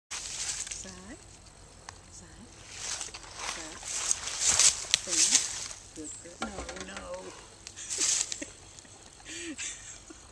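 An elderly woman talks calmly outdoors.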